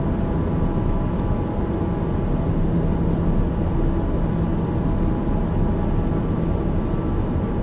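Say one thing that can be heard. A single-engine turboprop drones in cruise, heard from inside the cockpit.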